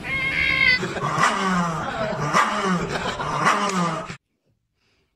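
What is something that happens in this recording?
A small dog snarls and growls fiercely.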